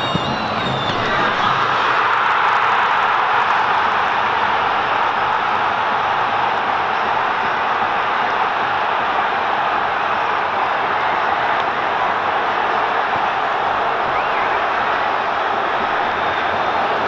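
A large stadium crowd roars loudly.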